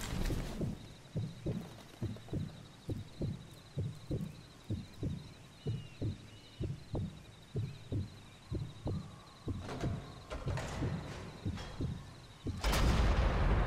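A heartbeat thumps steadily and heavily.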